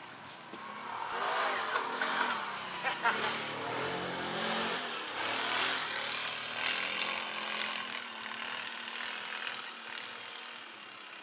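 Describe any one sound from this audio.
A V-twin ATV engine revs at full throttle, rising and then fading away.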